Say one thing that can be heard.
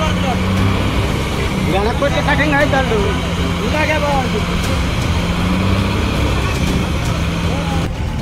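A heavy truck engine rumbles steadily nearby.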